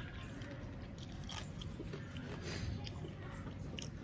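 Fingers scrape and rustle food on a plate.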